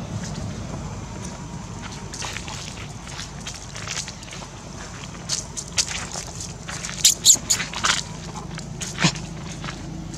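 Dry leaves crunch and rustle under walking monkeys.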